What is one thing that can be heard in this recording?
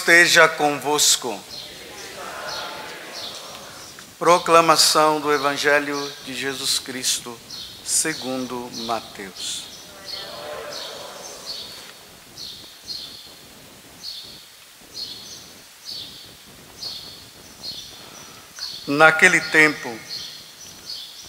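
A man speaks slowly and solemnly through a microphone in a large echoing hall.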